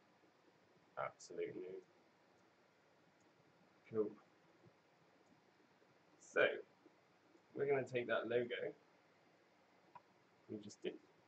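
A man speaks calmly in short bursts into a close microphone.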